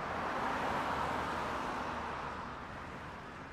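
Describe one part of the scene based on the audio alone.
A bus drives past close by.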